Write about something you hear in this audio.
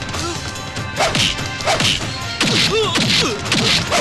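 Punches land with loud smacking thuds.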